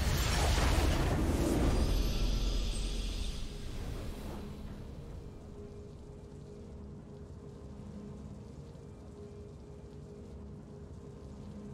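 A triumphant fanfare swells and fades into a soft hum.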